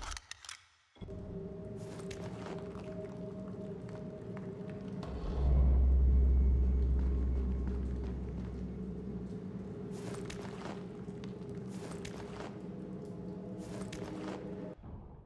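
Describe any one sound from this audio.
A low drone hums steadily in an echoing stone hall.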